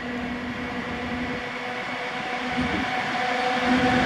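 A train's wheels clatter on the rails.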